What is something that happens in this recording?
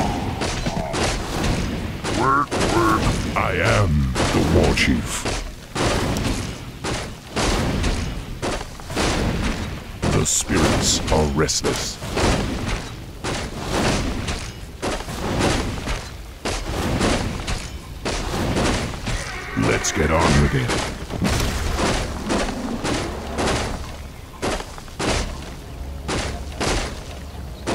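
Weapons clash and strike in quick, repeated blows.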